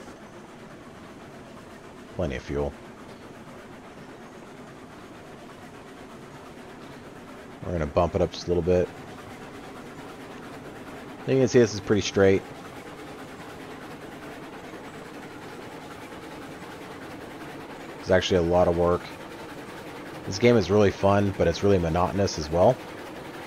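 A small steam locomotive chugs steadily along the rails.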